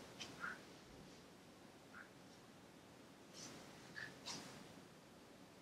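Clothing brushes softly against a mat as two people stretch.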